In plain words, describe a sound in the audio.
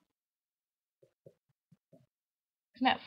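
A small cardboard box is set down on a wooden table with a soft knock.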